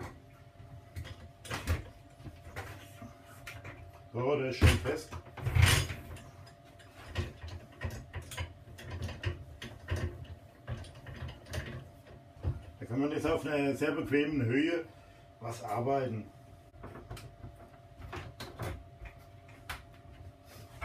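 Wooden and metal parts knock and clatter on a workbench.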